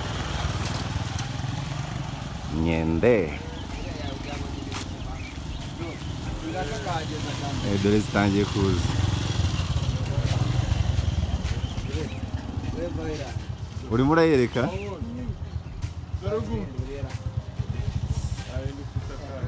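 Motorcycle engines idle and rumble nearby.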